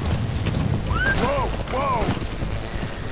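A horse whinnies.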